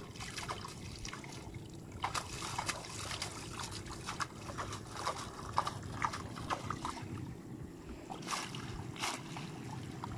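Small fish flap and splash in shallow water.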